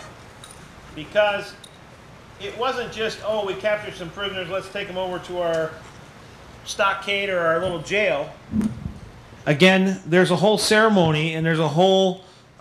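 A man speaks calmly into a microphone, lecturing.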